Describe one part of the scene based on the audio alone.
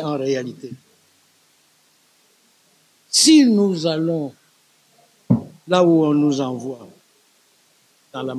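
An elderly man speaks calmly and close into a microphone, with pauses.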